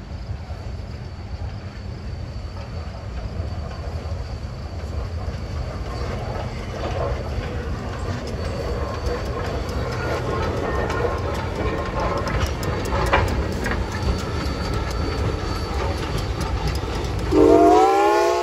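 A steam locomotive rumbles and chugs past close by.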